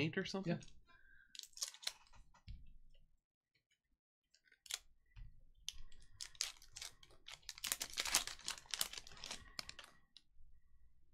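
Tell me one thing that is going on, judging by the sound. A foil wrapper crinkles and tears as hands open it.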